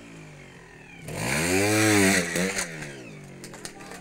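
A motorcycle engine revs hard and loud, then drops back.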